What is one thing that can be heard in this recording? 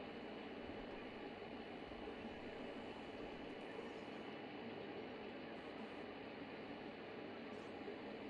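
A car engine hums steadily as the car drives along.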